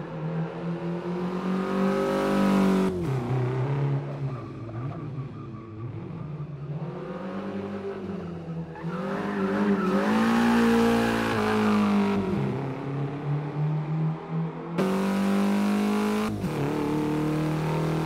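A sports car engine revs hard, rising and falling as gears change.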